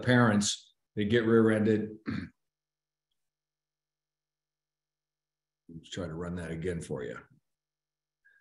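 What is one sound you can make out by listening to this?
A middle-aged man speaks calmly through an online call microphone.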